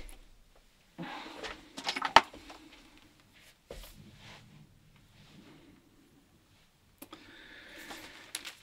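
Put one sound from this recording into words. A cable rustles and clicks as it is coiled by hand.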